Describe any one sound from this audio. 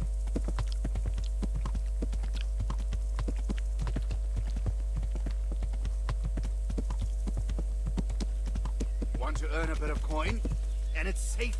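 A horse's hooves clop on a dirt track.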